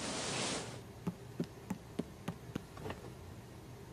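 Bare feet patter down wooden stairs.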